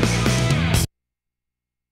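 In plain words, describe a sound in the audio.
Upbeat electronic game music plays and cuts off abruptly.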